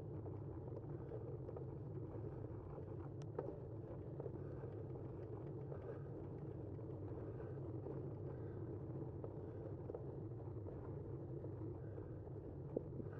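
Tyres hum steadily on a paved road.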